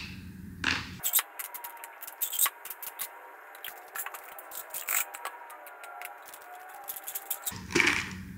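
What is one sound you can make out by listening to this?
Plastic lids click and tap as they are handled.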